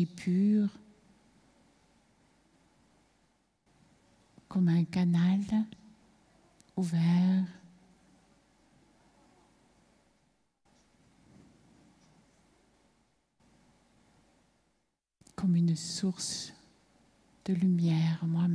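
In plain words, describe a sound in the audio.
A woman speaks calmly through a loudspeaker in a large hall, in short phrases with long pauses.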